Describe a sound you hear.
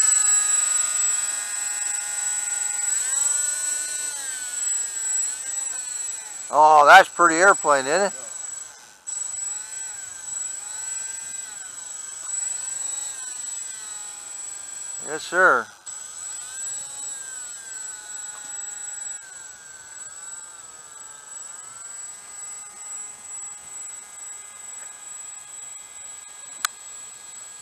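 Small electric motors on a model plane whine steadily, their pitch rising and falling.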